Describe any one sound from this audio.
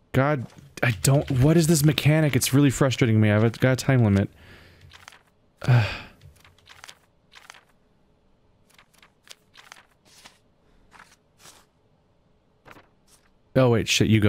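Paper pages flip and rustle, one after another.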